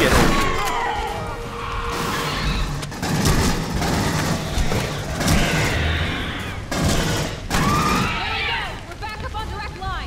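A creature shrieks and hisses.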